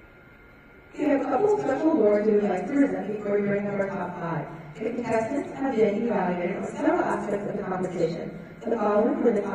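A young woman speaks clearly through a microphone.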